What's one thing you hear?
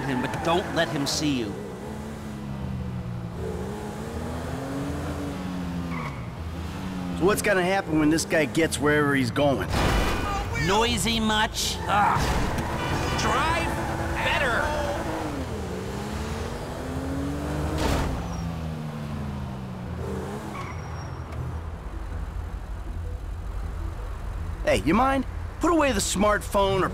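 A car engine hums and revs up and down as the car drives.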